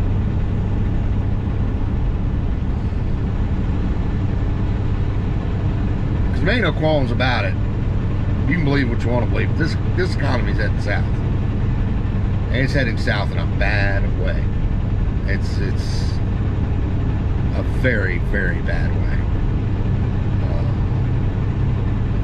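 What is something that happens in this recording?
A vehicle engine rumbles steadily while driving on a road.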